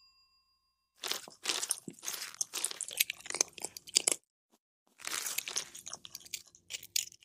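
A cat crunches dry food.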